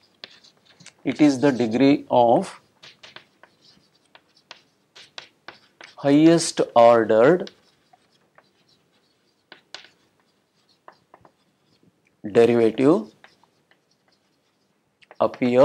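A middle-aged man speaks calmly in short phrases, as if lecturing.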